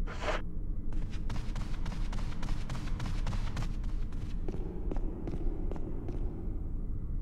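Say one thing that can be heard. Footsteps tap quickly down wooden stairs.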